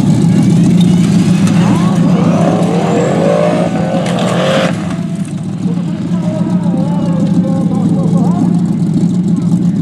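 A small engine drones steadily throughout.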